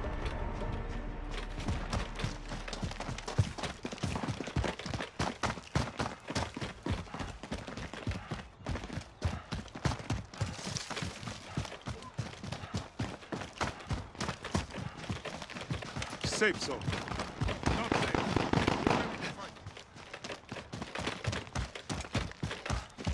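Footsteps run quickly over dry grass and gravel.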